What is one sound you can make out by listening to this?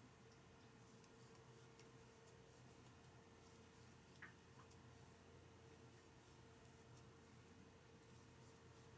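A crochet hook clicks softly against yarn.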